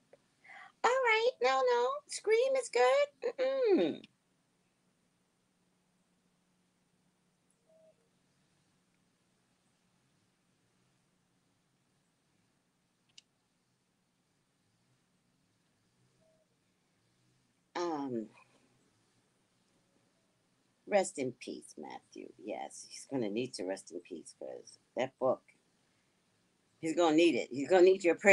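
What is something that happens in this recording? A woman speaks with animation through a microphone, in pauses.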